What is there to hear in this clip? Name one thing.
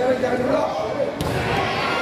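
A volleyball is smacked hard.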